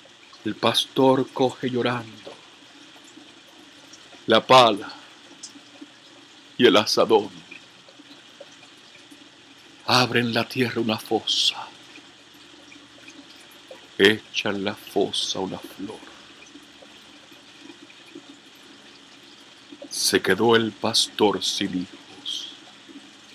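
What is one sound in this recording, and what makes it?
A middle-aged man speaks calmly close to the microphone, in short bursts with pauses.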